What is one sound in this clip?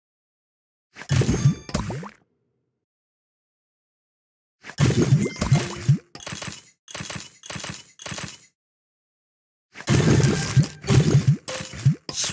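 Candies burst with bright popping and chiming effects in a mobile puzzle game.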